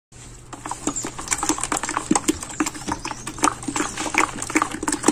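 Liquid sloshes and squelches as it is stirred.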